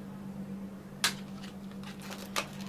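A plastic lid clicks into place.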